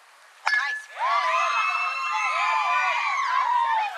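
Players and spectators cheer and shout loudly.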